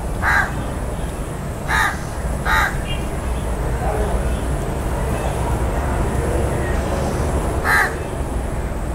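A crow caws loudly and harshly, close by, a few times.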